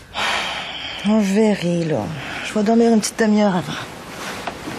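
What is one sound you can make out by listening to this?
A woman answers sleepily nearby.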